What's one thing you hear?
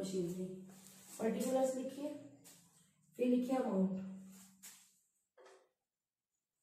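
A woman speaks calmly, close by, as if explaining.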